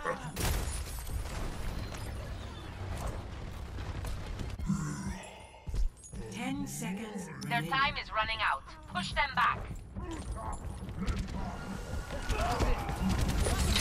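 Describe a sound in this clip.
Computer game weapons fire and rumble.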